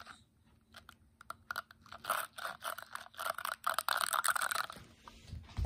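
Yarn clicks and snaps against the pegs of a plastic knitting loom.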